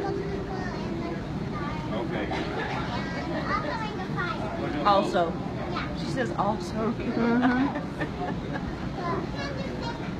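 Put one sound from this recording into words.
A man talks calmly into a microphone over a loudspeaker.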